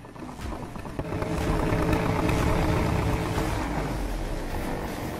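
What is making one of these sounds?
Powerful car engines roar loudly as cars launch from a standstill.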